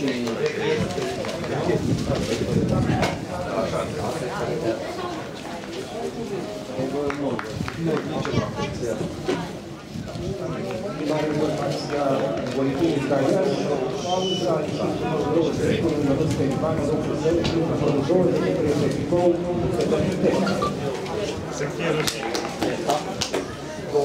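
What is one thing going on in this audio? A crowd in a stadium chants and cheers in the open air.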